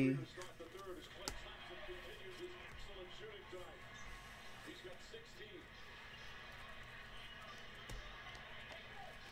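Trading cards rustle and slide against each other as they are shuffled.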